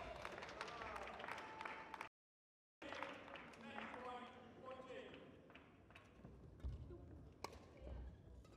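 A shuttlecock is struck sharply with rackets back and forth in an echoing hall.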